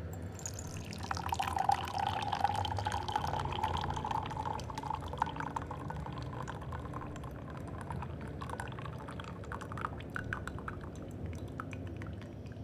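Tea pours in a thin trickle into a glass pitcher.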